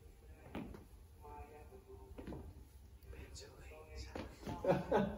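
Shoes thump on a hard floor as people step.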